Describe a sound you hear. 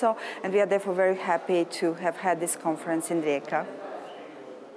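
A middle-aged woman speaks with animation close to the microphone.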